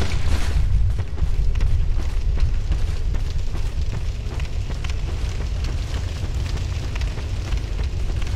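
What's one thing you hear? Fires roar steadily with a low rumble.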